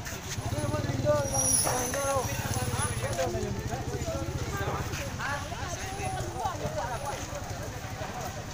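Several people talk excitedly nearby.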